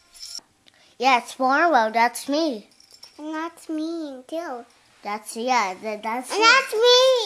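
Young girls sing close by in high voices.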